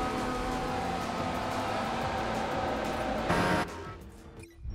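A racing car engine screams at high revs as it speeds past.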